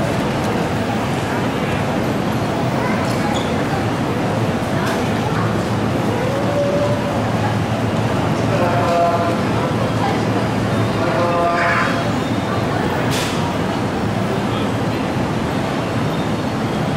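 A train rumbles slowly into a station along the tracks.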